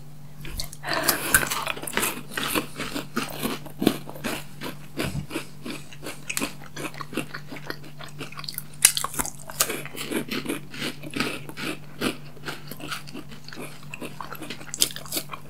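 Chocolate bars snap and crunch as they are bitten.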